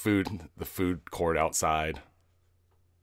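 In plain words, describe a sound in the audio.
A man speaks loudly and with animation close by.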